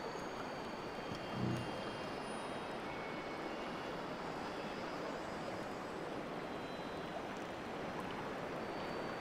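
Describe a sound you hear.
Water laps softly against a rocky shore.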